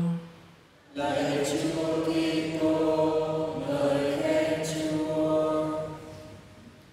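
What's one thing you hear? A man chants in a slow, steady voice through a microphone, echoing slightly.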